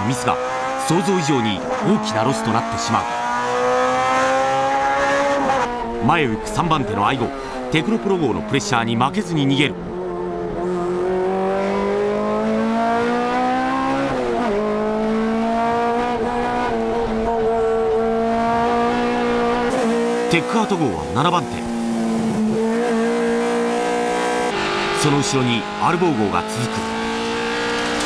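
Tyres squeal in short bursts as a car slides.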